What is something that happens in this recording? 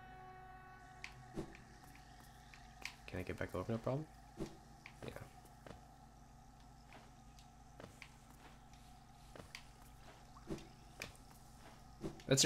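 Soft, quick footsteps patter on the ground.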